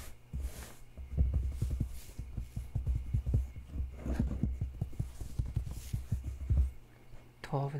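Fingertips tap lightly on paper.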